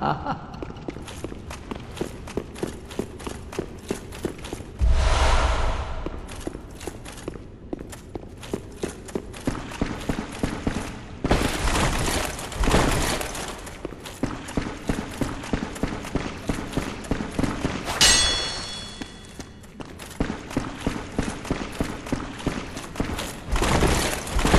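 Footsteps thud and clink quickly on stone, echoing in a large hall.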